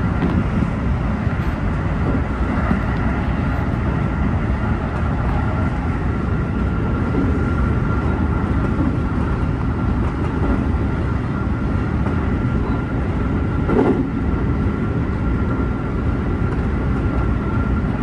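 A steady hum of the train's motor whines inside the cab.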